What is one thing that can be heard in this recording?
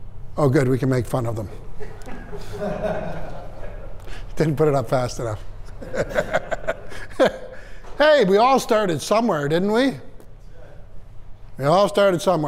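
A middle-aged man speaks with animation in a room with a slight echo.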